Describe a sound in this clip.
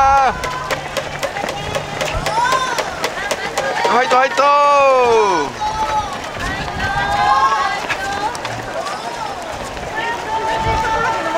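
Many runners' footsteps patter on the road.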